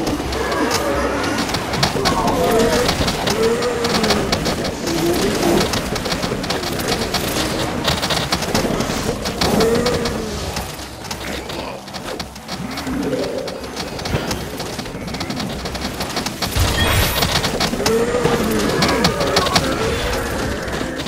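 Cartoonish game sounds pop and chime rapidly throughout.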